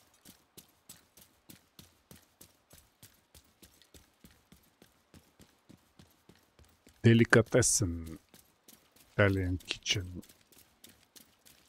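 Quick footsteps run steadily over hard ground.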